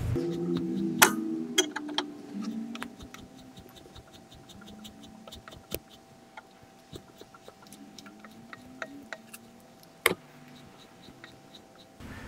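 A metal jack handle clicks as it is pumped.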